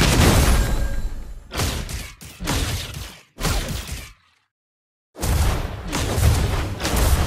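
Video game battle effects clash and zap.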